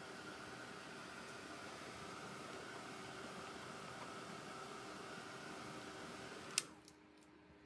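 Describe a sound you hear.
A hair dryer blows steadily close by, then switches off.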